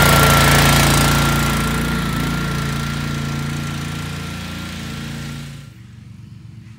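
An engine drones loudly close by, then fades as the machine moves away.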